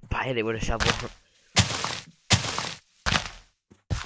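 Dirt crunches as blocks are dug out.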